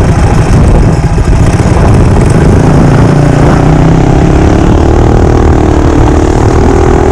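A mini bike's single-cylinder four-stroke engine drones at speed.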